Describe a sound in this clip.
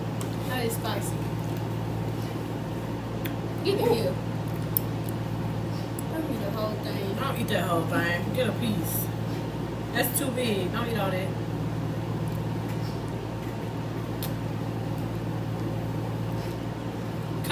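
A girl talks and laughs close by.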